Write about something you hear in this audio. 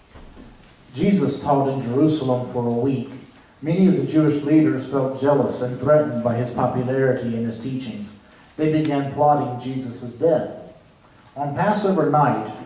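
A piano plays in a large echoing hall.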